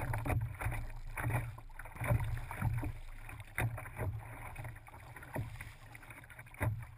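Water splashes and slaps against the hull of a kayak moving through small waves.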